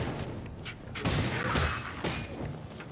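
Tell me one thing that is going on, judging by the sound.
A heavy blow lands with a loud crunch and crackle.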